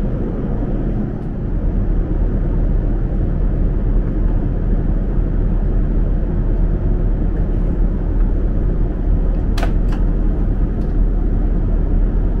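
A steady low engine roar fills an aircraft cabin.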